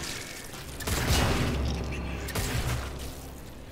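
A gun fires in short bursts.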